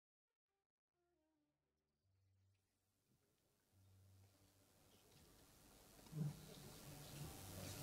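Orchestral strings play softly and swell.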